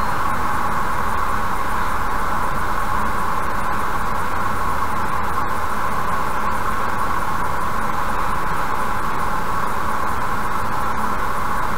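Tyres roar steadily on a highway inside a moving car.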